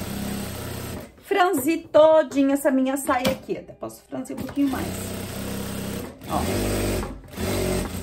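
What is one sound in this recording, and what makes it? A sewing machine runs, stitching in steady bursts.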